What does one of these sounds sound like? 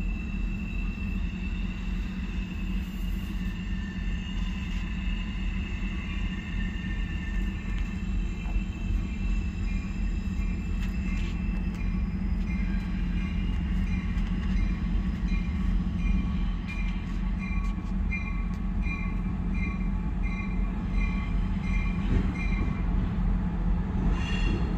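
A diesel train engine rumbles as it slowly approaches.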